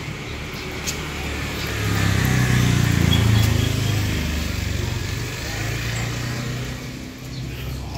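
A motorbike engine hums as it passes nearby.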